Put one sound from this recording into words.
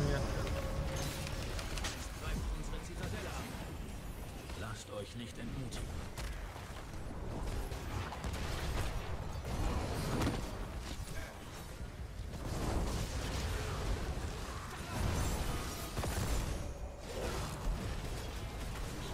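Game spell effects crackle and boom in a battle.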